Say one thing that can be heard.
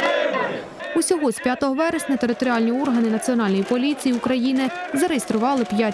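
A crowd of young men chants and shouts loudly outdoors.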